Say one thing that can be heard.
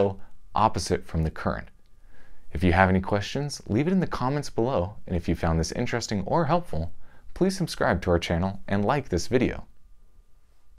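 A man talks calmly and with animation, close to a microphone.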